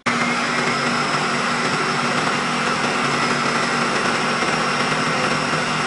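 A blender motor whirs loudly and steadily as it churns a thick mixture.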